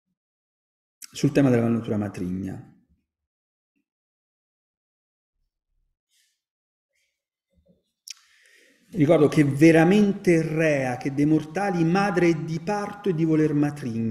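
An elderly man reads aloud into a microphone, heard through an online call.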